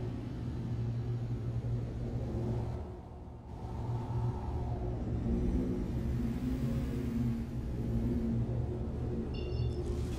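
A spaceship's engines hum with a low, steady rumble.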